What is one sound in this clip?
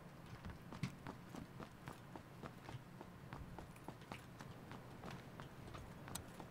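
Footsteps thud on wooden stairs, climbing quickly.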